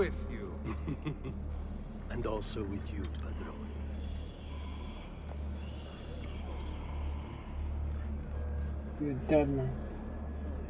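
A man answers in a low, gruff voice.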